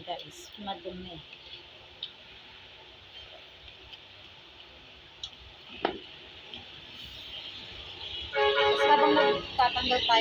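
A knife scrapes and cuts through a raw shrimp's shell.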